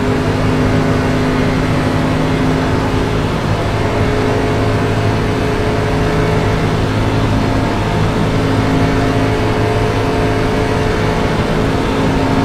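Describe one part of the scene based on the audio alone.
A race car engine roars steadily at high speed, close up.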